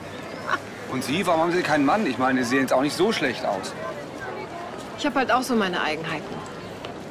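A young woman talks and laughs nearby.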